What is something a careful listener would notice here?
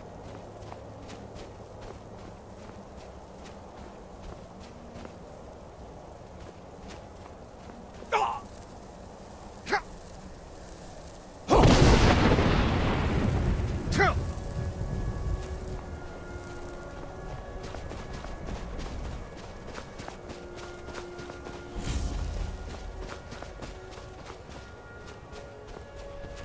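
Footsteps crunch steadily on snow.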